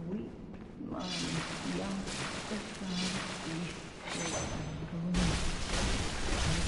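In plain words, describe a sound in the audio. A blade slashes and strikes with heavy, wet blows.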